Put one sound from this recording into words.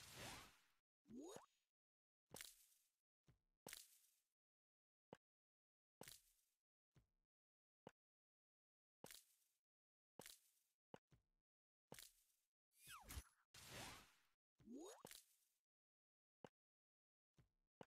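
Game blocks pop and burst with bright chimes.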